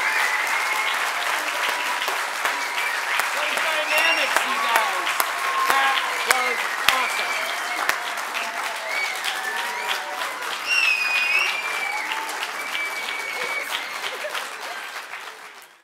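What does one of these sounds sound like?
A small band with horns and guitar plays in a large hall.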